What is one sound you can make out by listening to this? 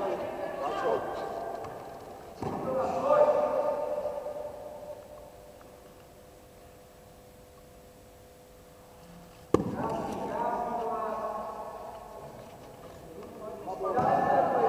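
Young people shout and cheer in a large echoing hall.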